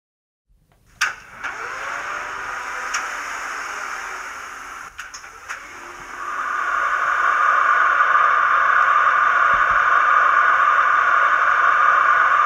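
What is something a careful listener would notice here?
A small diesel engine starts and hums steadily, growing louder.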